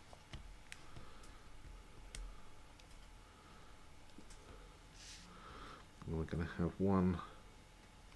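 Paper rustles and taps softly as a card is handled.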